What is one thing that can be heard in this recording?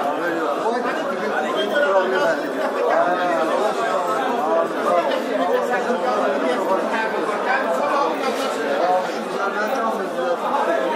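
Several men talk loudly and agitatedly over each other close by.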